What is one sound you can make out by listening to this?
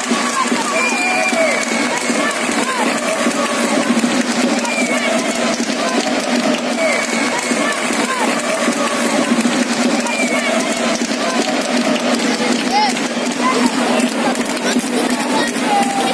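A large crowd of football supporters chants and sings in an open-air stadium.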